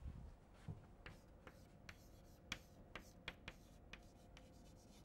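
Chalk taps and scratches on a blackboard.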